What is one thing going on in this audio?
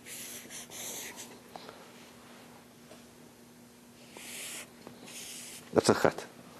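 A marker squeaks across paper.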